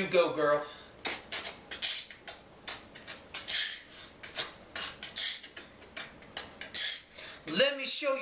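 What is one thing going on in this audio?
A young boy beatboxes with quick, sharp hissing and popping sounds.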